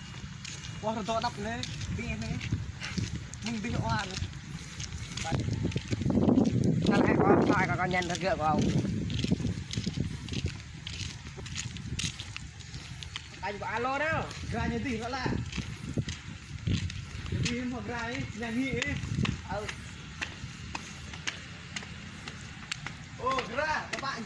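A young man talks casually nearby outdoors.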